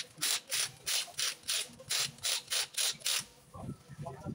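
An impact wrench rattles in rapid bursts on a wheel nut.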